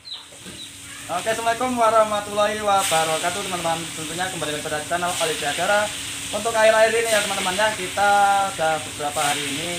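A young man talks cheerfully and close by.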